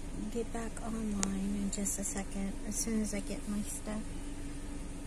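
A woman talks close by, in a low voice.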